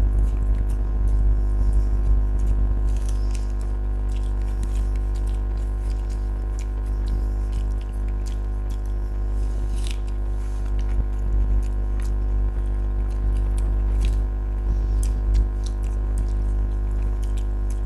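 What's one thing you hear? A man and a woman chew and smack their lips close up.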